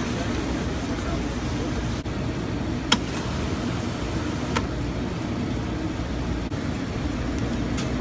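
A soda fountain pours fizzy drink into a cup with a steady gush.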